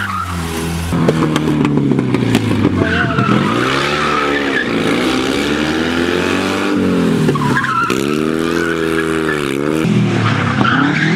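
A small car engine buzzes loudly, revving up and down through tight turns.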